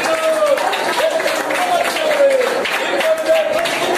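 A man claps his hands in rhythm.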